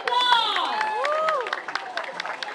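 A crowd of young people cheers and whoops loudly outdoors.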